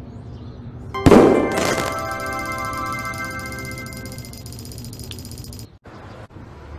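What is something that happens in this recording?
A bright victory jingle rings out and slowly fades.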